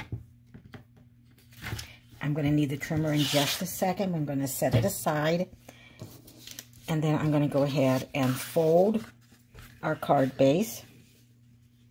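Stiff card rustles and scrapes as it is handled and folded.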